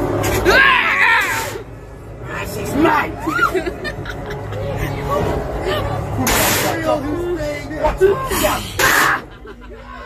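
Other people chatter nearby in a crowd.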